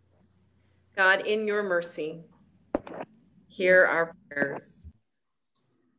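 An elderly woman speaks over an online call.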